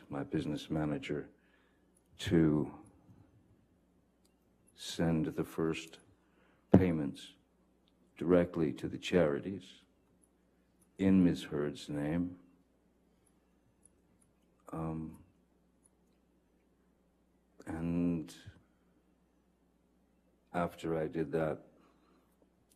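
A man speaks slowly and calmly into a microphone, with long pauses.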